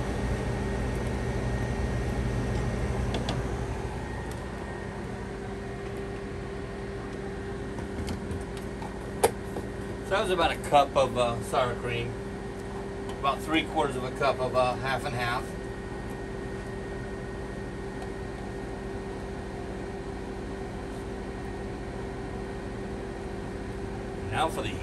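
A spatula scrapes and taps in a frying pan.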